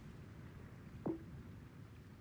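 A short menu click sounds once.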